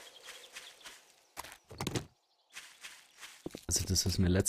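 Footsteps crunch through dry leaves and grass.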